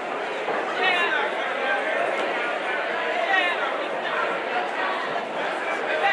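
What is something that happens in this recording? Gloved punches thud against a boxer's body.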